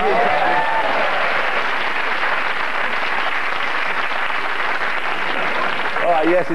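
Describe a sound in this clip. Several men laugh.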